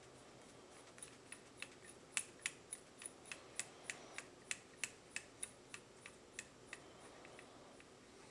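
A micrometer's ratchet clicks rapidly as it is turned.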